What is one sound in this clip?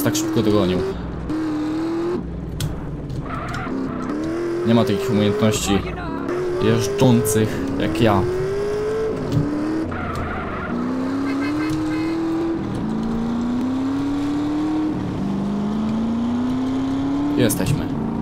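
A motorbike engine revs up again and again, rising in pitch each time.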